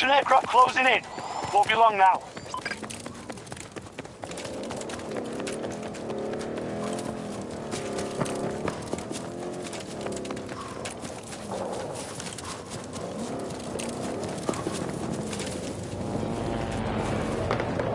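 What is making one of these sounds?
Footsteps run quickly over hard ground and grass.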